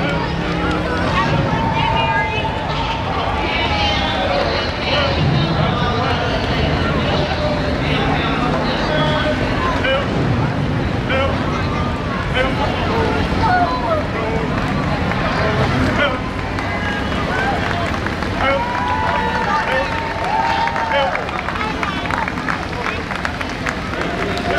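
Motorcycle engines idle and rumble past.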